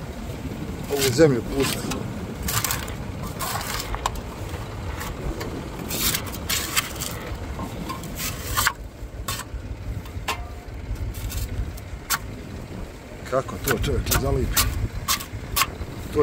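A metal scraper scrapes and knocks against a plough blade.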